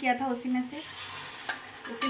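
Liquid pours into a hot pan.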